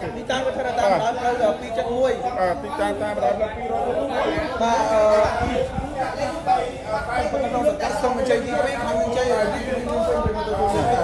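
Several men talk with animation close by.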